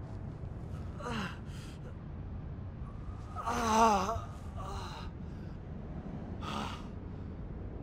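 A man groans and gasps in pain close by.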